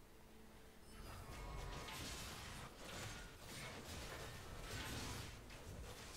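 Game battle sounds clash and whoosh.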